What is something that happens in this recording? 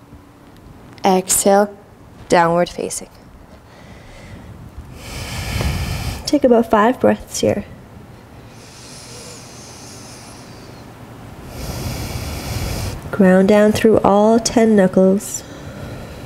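A young woman speaks calmly and slowly, close to a microphone.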